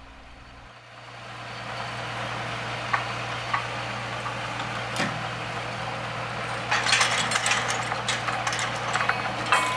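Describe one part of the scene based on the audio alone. Water gushes from a hose into a metal tank.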